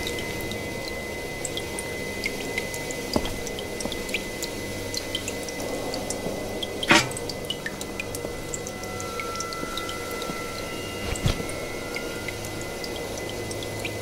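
Footsteps tap on metal flooring.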